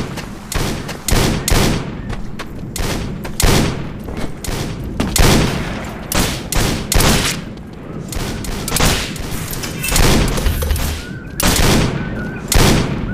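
Rifle shots crack out again and again, each with a short echo.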